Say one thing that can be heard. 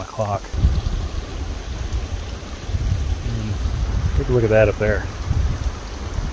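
Wind rumbles low and steady outdoors.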